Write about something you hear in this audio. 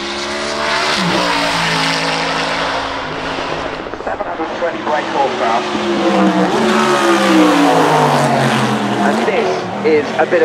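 A race car engine crackles and pops as the driver shifts gears.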